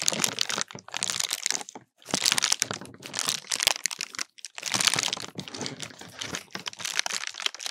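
A paper lantern crinkles and rustles right against a microphone.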